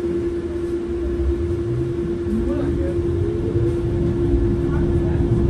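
A bus motor rises in pitch as the bus pulls away and rumbles louder.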